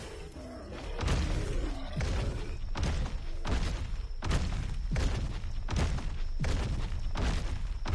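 A large creature's heavy footsteps thud in a steady, quick rhythm.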